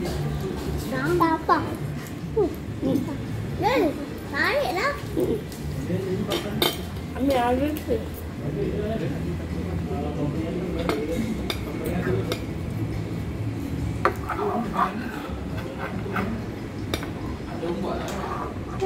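Forks and spoons clink against plates.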